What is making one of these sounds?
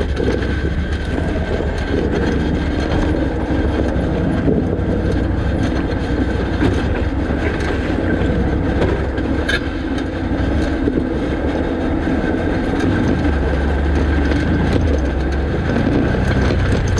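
An all-terrain vehicle's engine hums and revs in the distance.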